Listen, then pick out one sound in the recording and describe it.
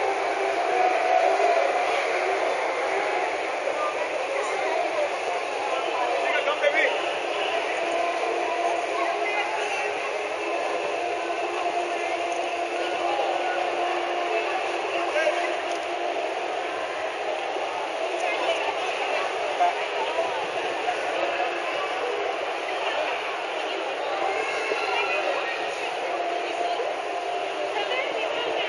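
A crowd murmurs and chatters outdoors close by.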